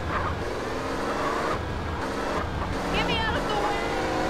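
Tyres screech in a skid.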